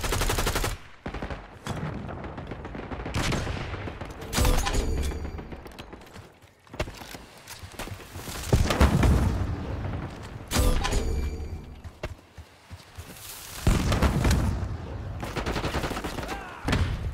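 A rifle fires loud, sharp shots a few times.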